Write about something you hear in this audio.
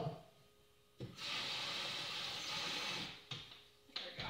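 Water runs from a tap.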